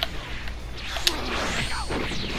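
An energy blast whooshes and crackles.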